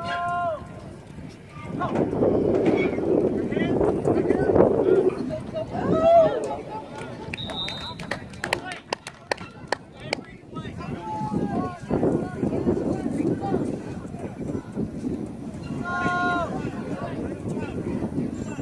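Young players shout on the field.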